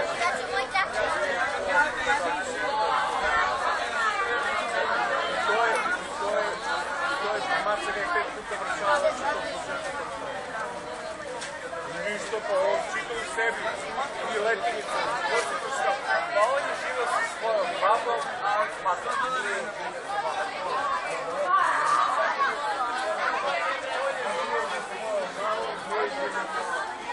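A crowd of children and adults chatter all around outdoors.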